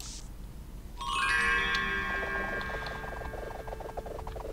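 A bright game jingle rings out and fades.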